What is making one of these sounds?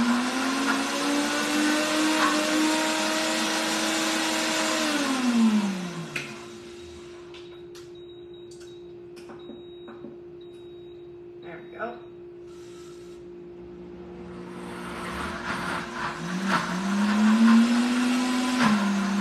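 A blender whirs loudly, winding down and then starting up again.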